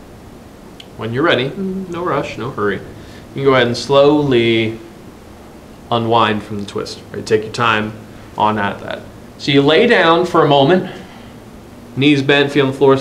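A man speaks calmly and clearly, close to a microphone.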